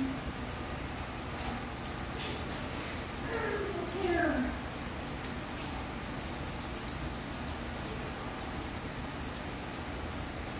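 Scissors snip quickly through hair.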